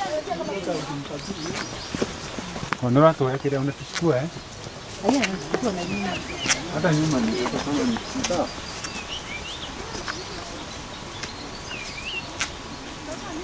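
Footsteps scuff along a dirt path.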